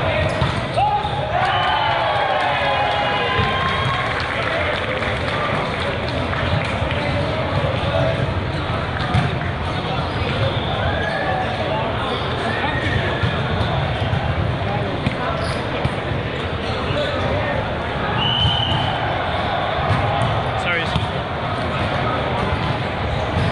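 Many voices chatter and call out throughout a large echoing hall.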